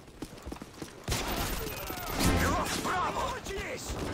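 Gunshots ring out in a quick burst.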